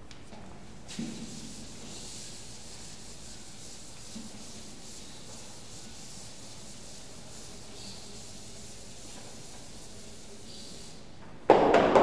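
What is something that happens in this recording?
A duster rubs softly across a chalkboard.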